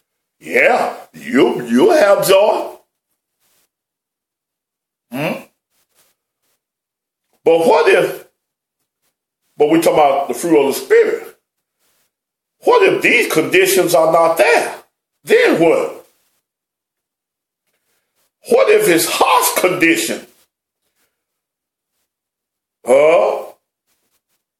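A middle-aged man speaks calmly and deliberately close to a microphone, pausing between phrases.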